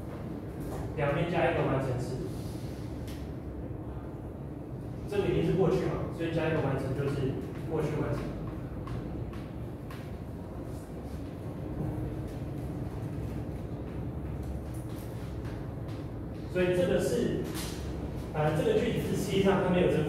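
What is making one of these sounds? A man lectures in a large room, his voice carrying with a slight echo.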